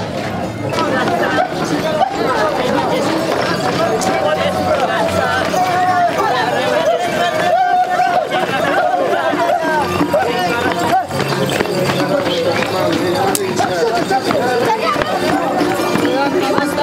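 A band of flutes plays a lively tune close by, outdoors.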